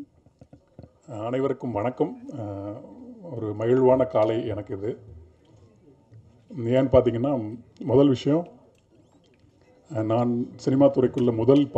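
A young man speaks with animation into a microphone over loudspeakers.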